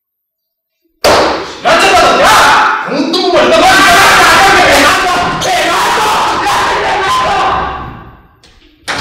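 A young woman shouts and screams nearby.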